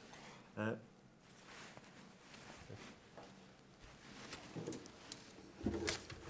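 A man speaks briefly and calmly into a microphone nearby.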